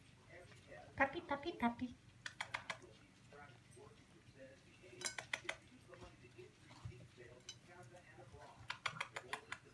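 Kibble clinks against a plate as a dog eats.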